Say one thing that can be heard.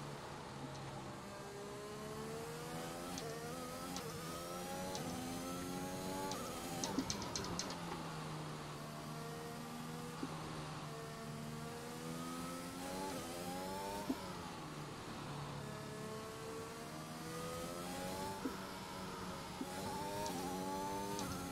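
A racing car engine revs high, rising in pitch and dropping with each gear change.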